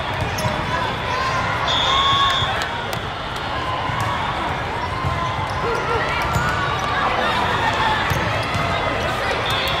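A crowd chatters and calls out across a large echoing hall.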